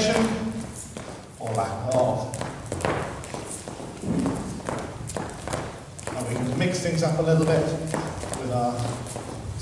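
Shoes tap and shuffle on a hard floor in rhythm.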